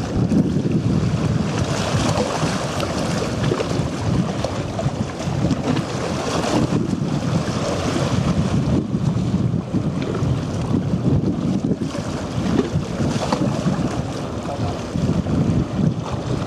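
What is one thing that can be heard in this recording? Water splashes against the hull of a moving boat.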